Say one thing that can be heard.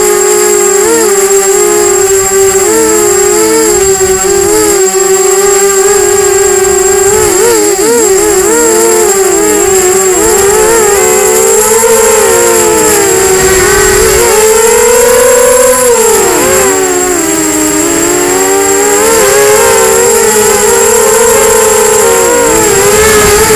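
Small drone motors whine loudly and close, their pitch rising and falling quickly.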